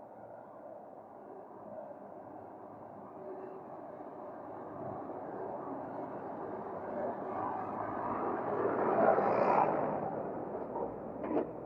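A tractor engine rumbles, growing louder as it approaches and passes close by.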